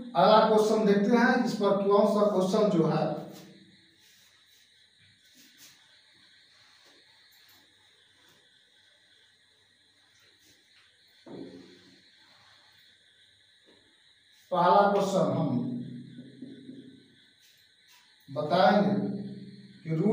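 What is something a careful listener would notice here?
A young man speaks clearly and with animation, close to a microphone.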